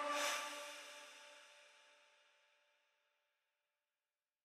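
A magic spell strikes with a bright ringing crash that slowly fades.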